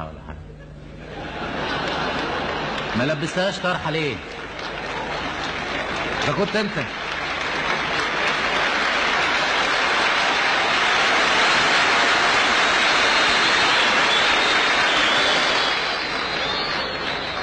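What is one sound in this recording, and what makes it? A large crowd applauds in a big hall.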